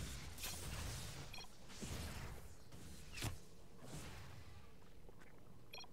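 Laser blasts and weapon fire crackle in quick bursts.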